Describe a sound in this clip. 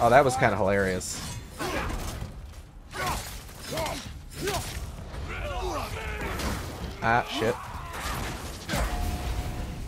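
Heavy blows land with loud thuds and whooshes.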